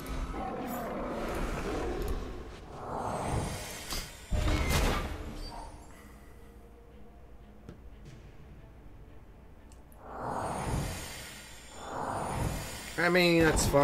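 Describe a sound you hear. Magical game sound effects whoosh and chime.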